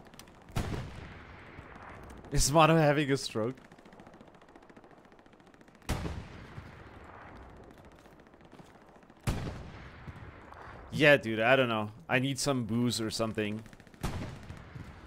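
A rifle fires single loud shots that ring out and echo.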